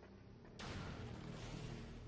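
An energy blaster fires a shot.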